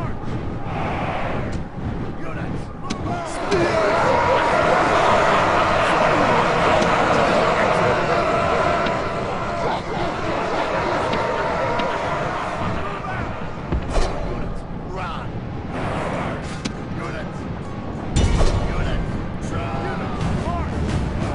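A large battle rages with a loud, rumbling din of fighting troops.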